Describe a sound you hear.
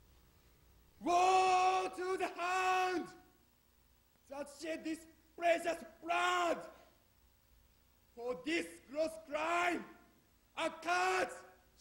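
A young man declaims loudly and dramatically.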